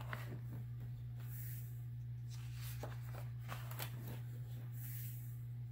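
Hands rub and smooth over paper.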